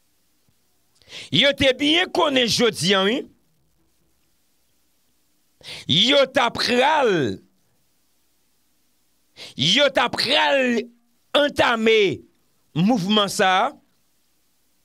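A man speaks calmly and closely into a microphone, in short bursts with pauses.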